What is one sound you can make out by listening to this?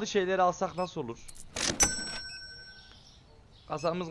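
A cash register drawer slides open with a clatter.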